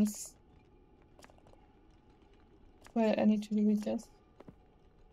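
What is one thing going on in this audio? A young woman speaks briefly and with animation, close to a microphone.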